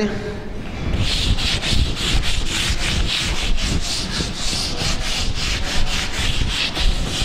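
A cloth duster rubs rapidly back and forth across a chalkboard.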